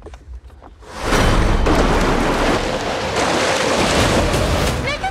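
Water splashes and churns against a small boat.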